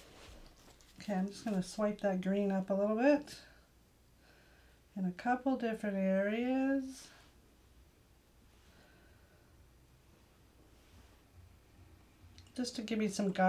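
A woman talks calmly and closely, in short bursts.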